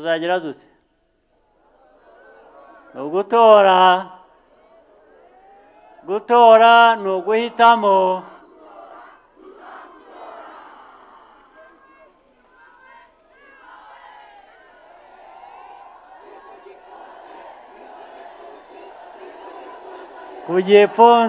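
A man speaks forcefully through a loudspeaker system outdoors.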